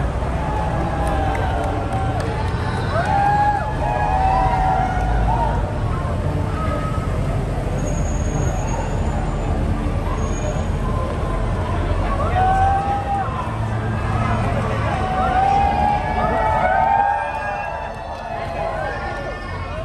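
A large crowd of people chatters and cheers outdoors.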